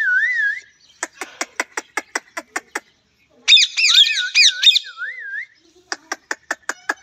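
Parakeets chatter with rapid clicking calls.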